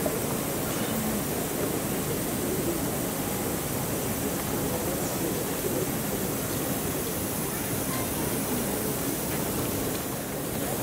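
A crowd murmurs and chatters in the distance outdoors.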